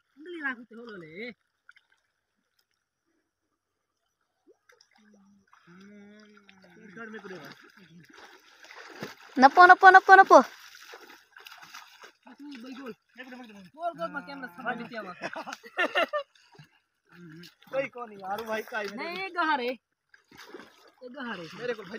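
Water sloshes as men wade through shallow mud.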